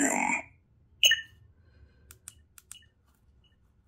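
A button on a toy hilt clicks softly.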